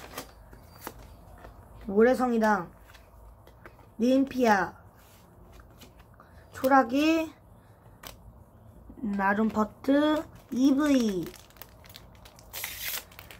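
Trading cards click and rustle as they are handled.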